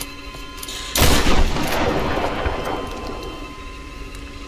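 Wooden planks break and crash apart.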